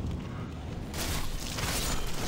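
A sword clashes loudly with a sharp metallic scrape.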